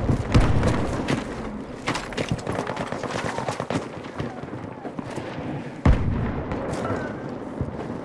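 Gunshots crack in bursts nearby.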